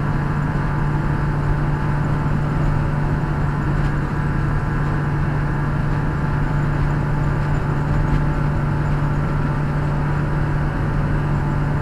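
Tyres roll steadily over the road.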